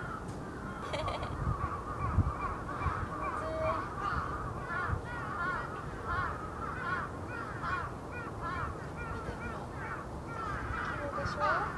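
A young woman speaks softly nearby, outdoors.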